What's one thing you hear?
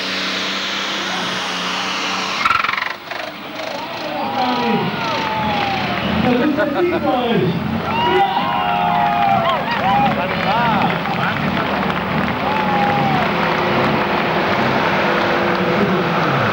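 A powerful tractor engine roars loudly at full throttle.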